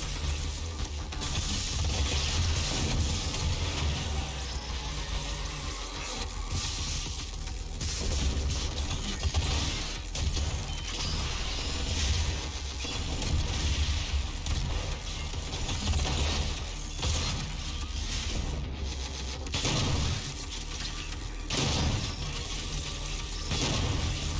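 Gunfire and explosions boom in a video game.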